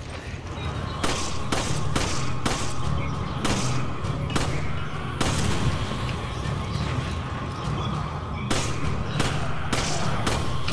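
A handgun fires several shots.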